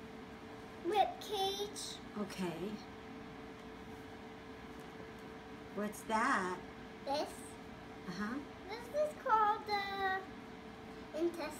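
A small girl talks in a high voice.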